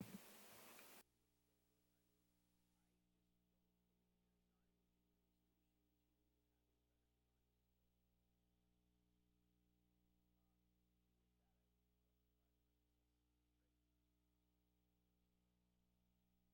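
A man speaks quietly at a distance.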